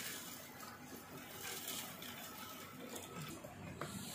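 Water pours from a plastic bottle into a glass jug.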